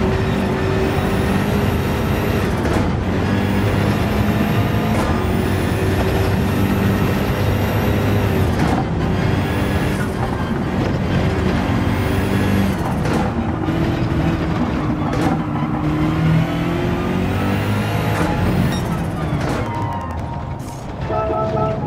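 A race car engine roars at high revs, rising and dropping sharply as gears shift.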